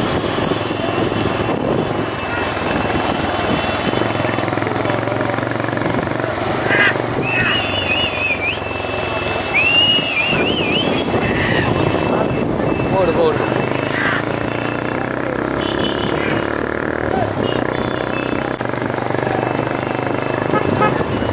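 A crowd of men shouts and cheers from the roadside.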